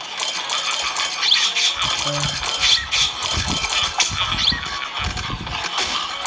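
A mobile game plays loud, busy sound effects.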